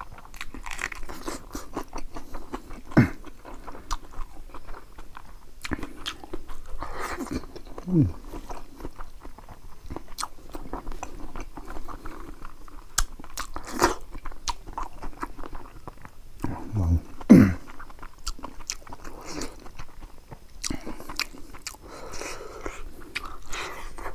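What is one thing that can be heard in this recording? A man chews food noisily close up.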